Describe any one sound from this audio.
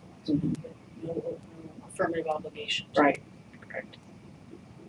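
An adult man speaks briefly into a microphone, heard at a distance.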